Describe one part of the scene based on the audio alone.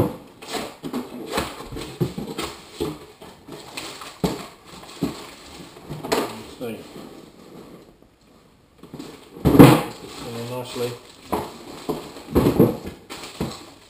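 Cardboard rustles and scrapes as a man handles a box.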